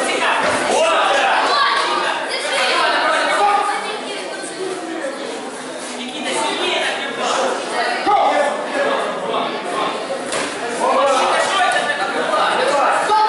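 Fighters' kicks and punches thud on padding.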